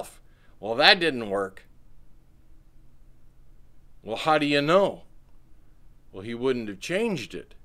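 A middle-aged man speaks calmly and clearly into a close microphone, with pauses between phrases.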